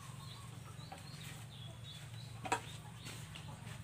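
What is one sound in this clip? Hay rustles softly as tiny newborn animals squirm in a nest.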